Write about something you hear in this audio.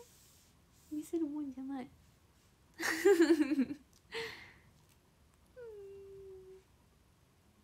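A young woman speaks playfully and close by, in short bursts.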